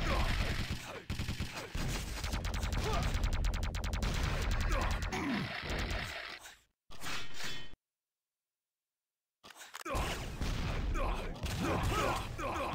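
Rapid electric gunfire crackles and buzzes.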